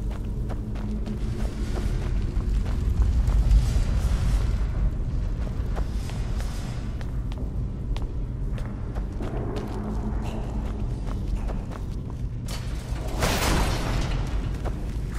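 Footsteps tap on a stone floor in an echoing space.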